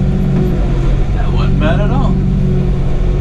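A man speaks close by over the engine.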